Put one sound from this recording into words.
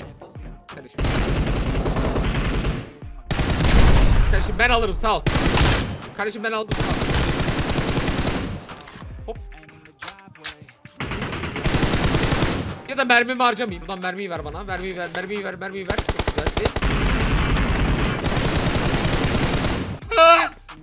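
Rapid gunfire bursts in loud volleys.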